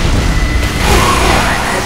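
A flamethrower roars.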